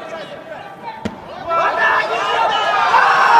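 A wrestler slams onto the mat with a thud.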